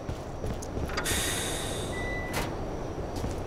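A heavy metal door hisses as it slides open.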